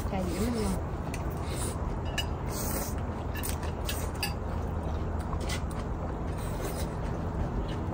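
Spoons clink against bowls.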